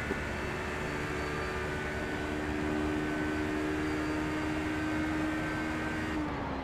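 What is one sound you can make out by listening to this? A racing car engine drones at high, steady revs, then drops slightly near the end.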